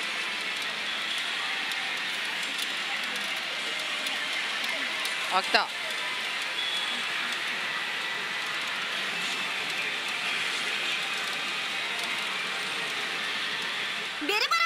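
A gaming machine plays bright chiming music and sound effects.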